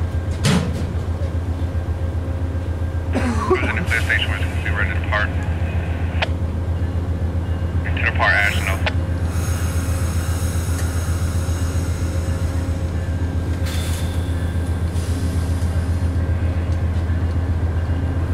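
A train engine rumbles steadily close by.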